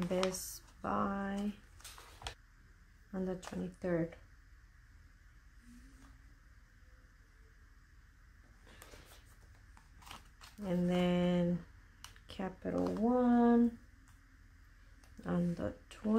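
Stickers rustle softly as they are pressed onto paper.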